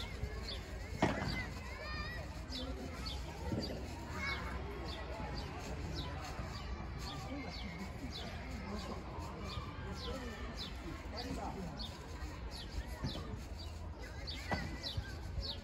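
Padel rackets hit a ball with sharp pops.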